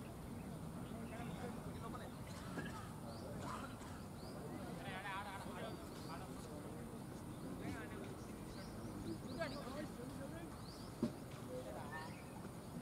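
Young men call out to each other outdoors, some distance away.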